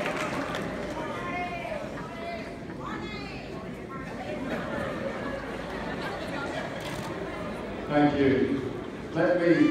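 A man speaks into a microphone over loudspeakers.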